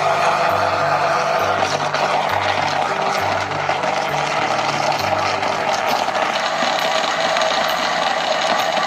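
A blender motor whirs loudly and steadily, churning liquid.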